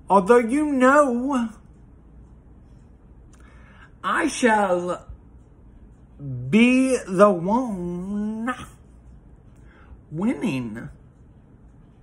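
A man talks close up with animation, in short bursts with pauses.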